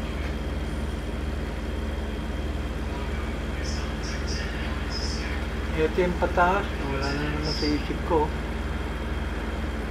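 A truck engine drones steadily with a low hum.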